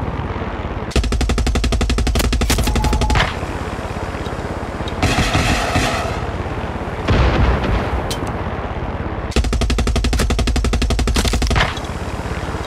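A machine gun fires long rapid bursts.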